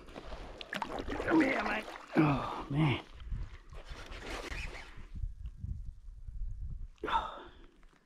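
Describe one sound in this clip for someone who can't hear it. A hooked fish splashes at the water's surface.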